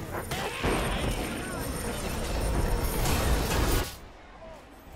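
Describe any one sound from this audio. Magic spells blast and crackle loudly in a fight.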